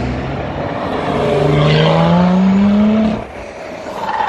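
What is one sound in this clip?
A sports car engine roars loudly close by, rising in pitch as it speeds up.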